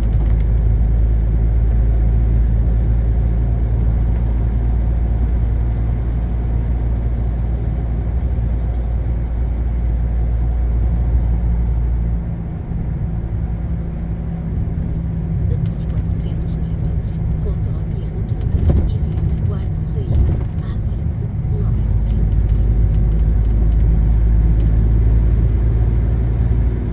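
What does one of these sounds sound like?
A bus engine hums low and steady from inside, rising and falling with speed.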